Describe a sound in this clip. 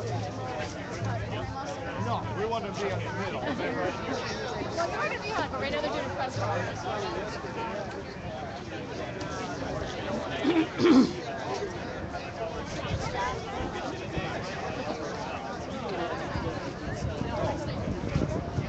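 A crowd of people talks and chatters all around outdoors.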